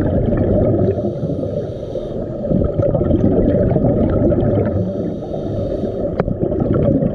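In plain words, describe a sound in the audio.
Bursts of exhaled bubbles fizz and burble loudly.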